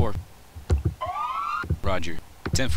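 A police siren wails briefly.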